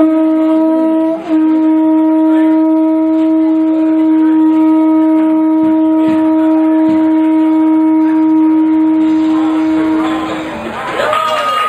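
A conch shell horn blows a long, loud, steady note.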